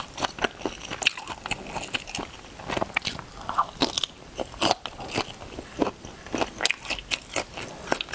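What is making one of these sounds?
A young woman chews food wetly and smacks her lips close to a microphone.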